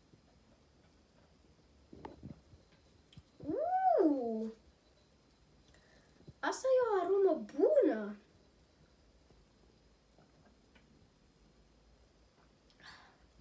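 A young boy gulps a drink from a bottle.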